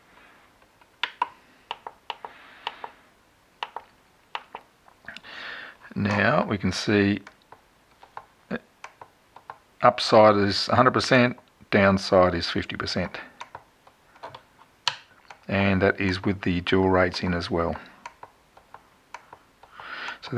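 Buttons on a handheld remote control click sharply now and then.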